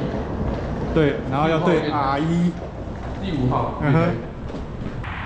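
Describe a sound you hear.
An older man speaks calmly close by.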